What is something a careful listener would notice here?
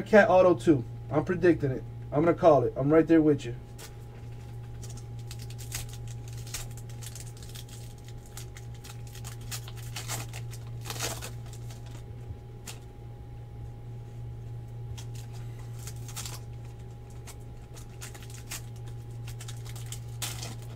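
Plastic card wrappers crinkle and rustle as hands tear them open and sort cards.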